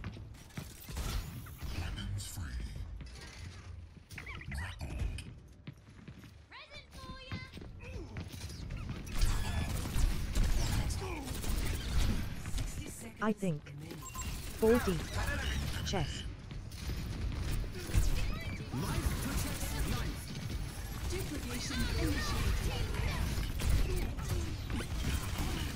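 Rumbling thuds and blasts of a game battle sound throughout.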